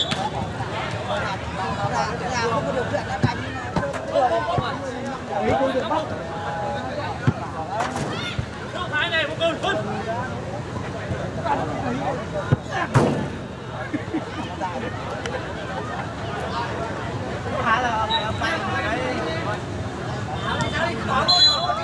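Spectators shout and cheer nearby, outdoors.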